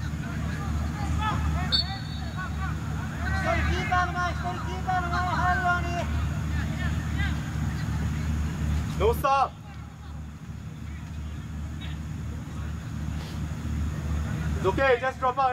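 Young men shout and call to each other across an open field in the distance.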